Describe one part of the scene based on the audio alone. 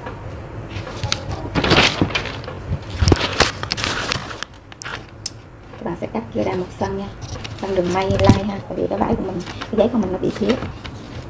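Stiff paper rustles and crinkles as it is handled.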